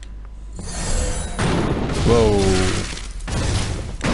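A fiery magic blast roars and whooshes.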